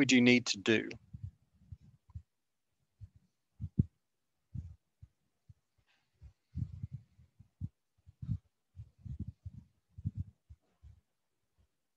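A pen taps and scratches on paper.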